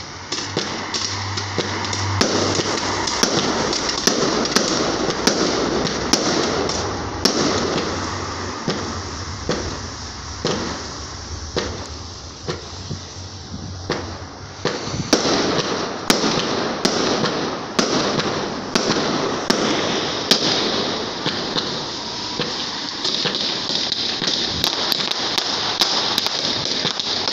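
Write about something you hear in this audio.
Fireworks crackle and fizz as they shoot into the sky.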